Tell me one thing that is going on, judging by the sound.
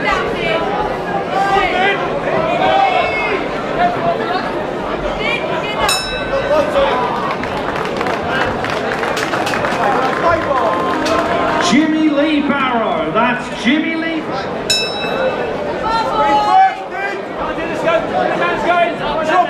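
A crowd cheers and shouts loudly in an echoing hall.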